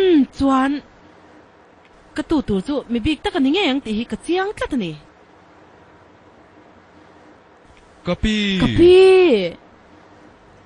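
An elderly woman talks and laughs warmly close by.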